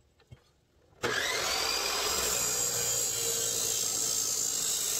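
A cut-off saw starts with a loud whine and grinds through metal.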